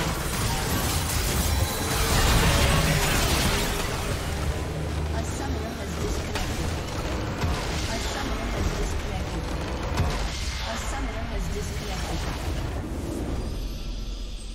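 Magic blasts and blows crash and burst in a hectic video game battle.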